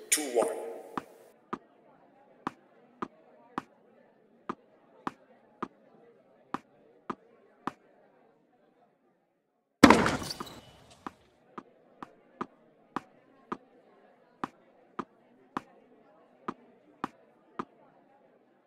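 A tennis ball bounces steadily on a hard court.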